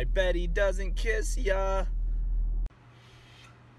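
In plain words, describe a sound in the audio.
A young man sings with animation.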